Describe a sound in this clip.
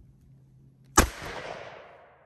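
A gunshot cracks loudly outdoors and rings out.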